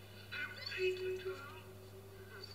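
A girl speaks briefly through a television speaker.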